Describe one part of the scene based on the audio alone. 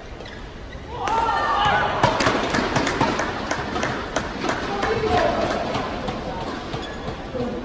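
A crowd in a large echoing hall cheers and applauds.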